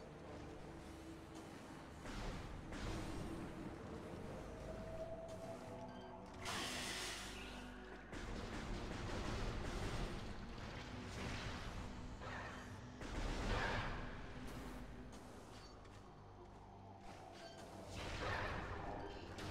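Game music plays with a low, steady hum.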